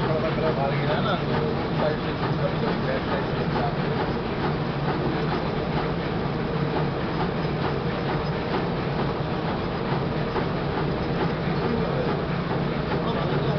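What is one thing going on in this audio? A machine hums and rattles steadily.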